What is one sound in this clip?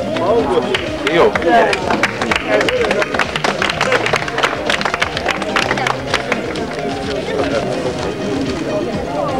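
People clap their hands in scattered applause.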